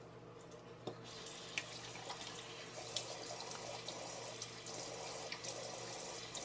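Tap water runs into a sink.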